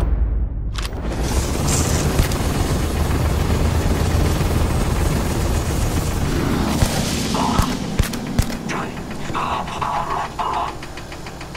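A laser beam hums and crackles with sparks.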